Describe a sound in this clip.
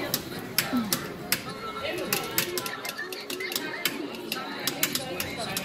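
A puppet's wooden feet clack in quick, lively taps on a small stage.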